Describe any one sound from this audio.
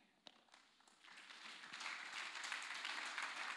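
Pages of a book rustle.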